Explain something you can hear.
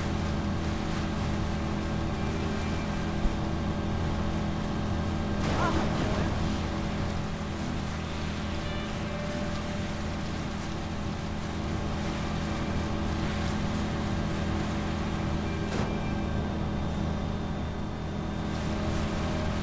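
Water splashes and rushes against a speeding boat's hull.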